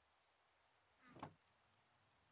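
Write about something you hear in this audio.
A wooden chest thuds shut.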